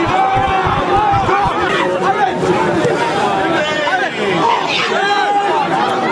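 A young man shouts close by.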